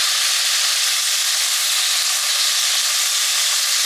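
Metal tongs scrape and clack against a pan.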